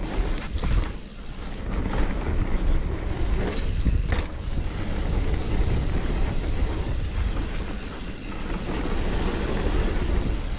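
A bike's frame and chain rattle over bumps.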